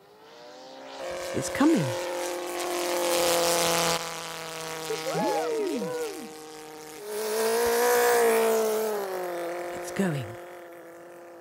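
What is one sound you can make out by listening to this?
A model plane's engine buzzes loudly and whines as it passes overhead.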